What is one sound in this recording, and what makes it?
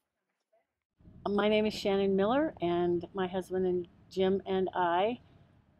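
A middle-aged woman speaks with animation, close to a microphone.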